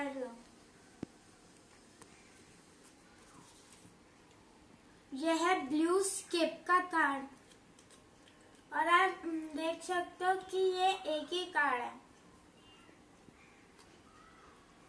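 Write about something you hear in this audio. Playing cards rustle and tap in a girl's hands.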